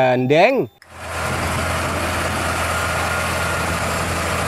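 A heavy truck engine rumbles as the truck drives by.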